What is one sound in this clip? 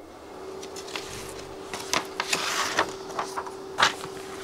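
Paper rustles as a sheet is turned.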